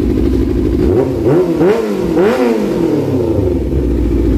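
A motorcycle engine revs up sharply a few times and drops back.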